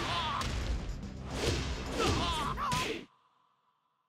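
Punches and kicks thud in a video game fight.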